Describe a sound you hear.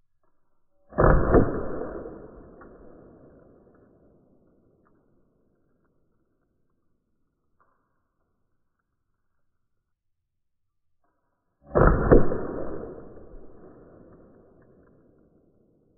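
A pepper ball projectile bursts against a board.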